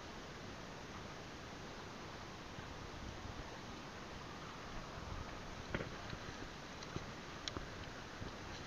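Water splashes as a man wades through a stream.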